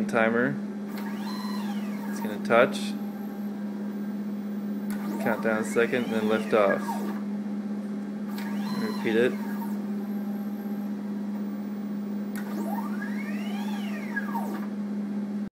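A small motor whirs, rising and falling in pitch as it moves.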